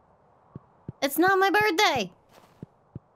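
A young woman exclaims brightly into a microphone.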